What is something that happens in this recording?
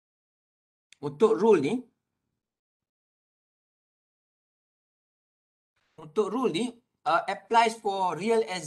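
A man speaks calmly through a microphone, lecturing in short phrases.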